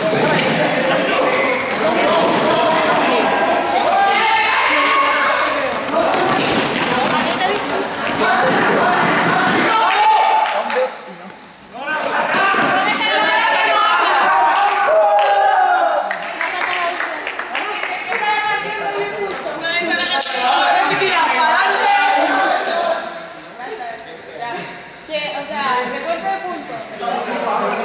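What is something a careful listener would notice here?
A group of young people chat and call out in a large echoing hall.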